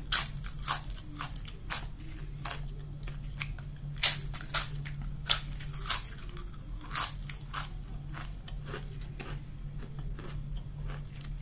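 A woman crunches crisp chips loudly and close up.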